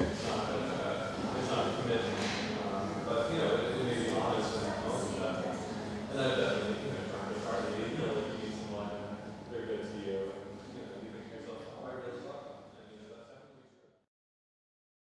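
A man talks calmly on a phone close by.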